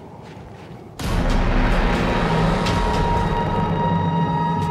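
A huge creature roars loudly.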